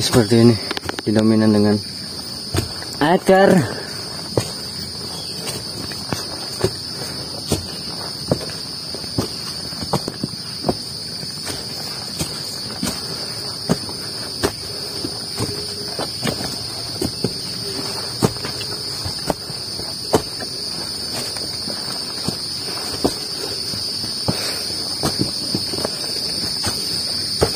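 Footsteps tread on a dirt trail.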